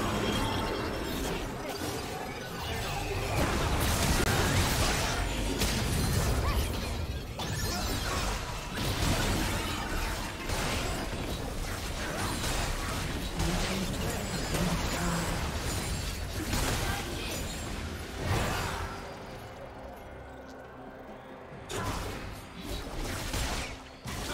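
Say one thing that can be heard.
Spell blasts and hits crackle and whoosh during a fast fight.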